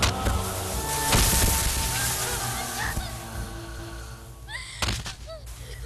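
A man's body thuds onto sand.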